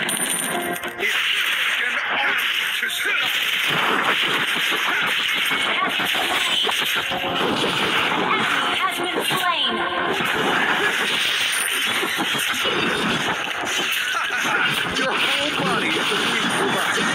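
Video game spell blasts and sword strikes crackle and whoosh in quick bursts.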